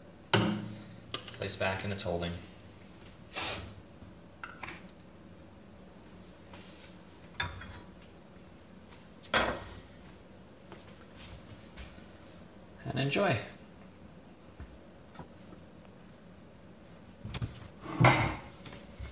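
A glass coffee pot clinks against a metal stove grate.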